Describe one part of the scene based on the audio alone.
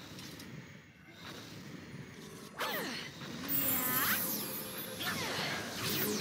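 Magic spells burst and shimmer with sweeping, ringing tones.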